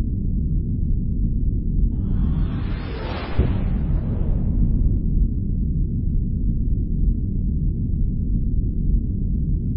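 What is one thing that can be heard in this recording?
A starship engine hums with a low, steady rumble.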